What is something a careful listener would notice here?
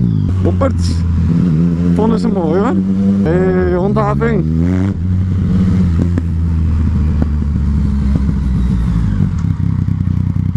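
A motorcycle engine hums steadily close by, revving now and then.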